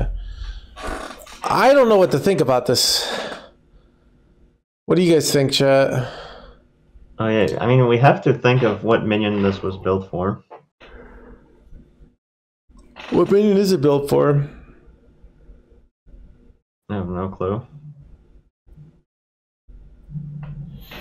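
A young man talks animatedly into a close microphone, in bursts.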